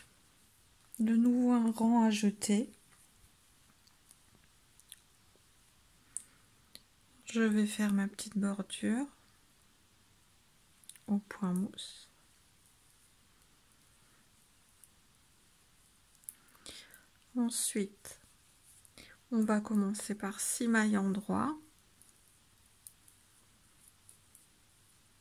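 Knitting needles click and scrape softly.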